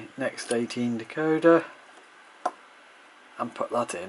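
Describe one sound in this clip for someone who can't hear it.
A small plastic part clicks into place.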